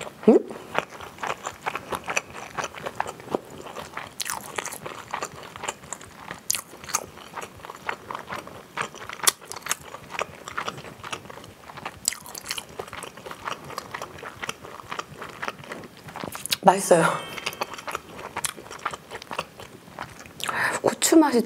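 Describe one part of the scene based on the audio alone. A young woman chews crunchy food loudly and wetly, close to a microphone.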